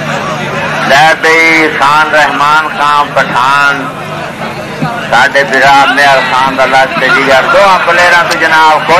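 A man shouts loudly and excitedly nearby.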